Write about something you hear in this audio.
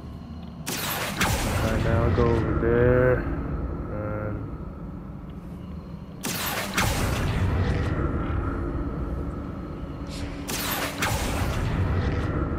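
A magic spell whooshes and crackles in sudden bursts.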